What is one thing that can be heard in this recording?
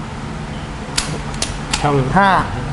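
Metal gears click as a shaft is turned by hand.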